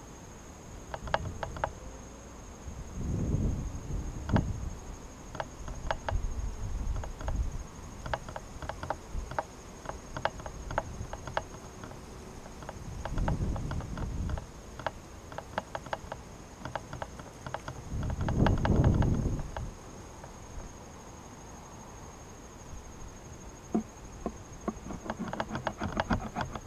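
Wooden hive frames click and scrape.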